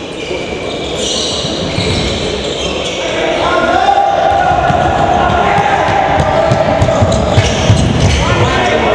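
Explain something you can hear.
A ball thuds as it bounces on the court floor.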